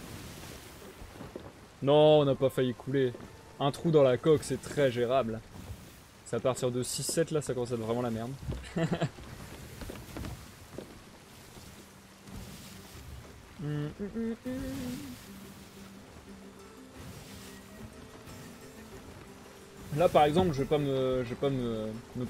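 Waves wash against a sailing ship.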